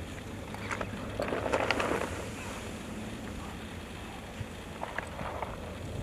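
A parachute canopy flaps and rustles in the wind.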